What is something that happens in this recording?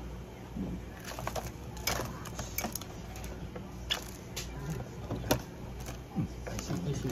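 A wire cage rattles and clicks as it is handled.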